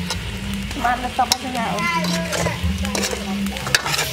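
A metal spoon scrapes and stirs in a pan.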